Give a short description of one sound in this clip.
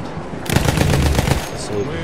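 A biplane engine drones overhead.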